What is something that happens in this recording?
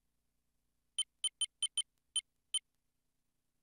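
Short electronic menu clicks tick in quick succession.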